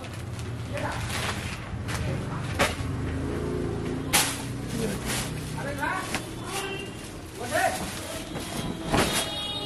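A plastic-wrapped sheet crinkles and rustles as it is handled.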